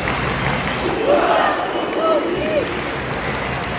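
Close spectators shout and whistle.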